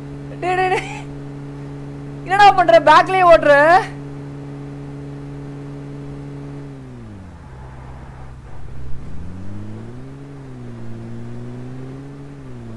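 A game jeep's engine hums as it drives along a road.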